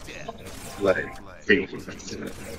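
An energy weapon crackles and zaps.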